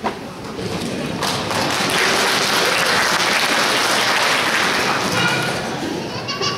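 An audience applauds loudly in a large hall.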